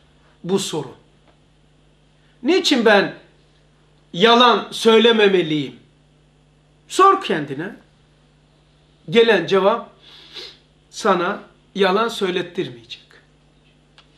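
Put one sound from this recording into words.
A middle-aged man speaks calmly and clearly into a nearby microphone, in short phrases with pauses.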